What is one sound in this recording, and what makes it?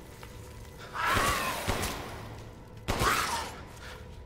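Gunshots ring out loudly with a short echo.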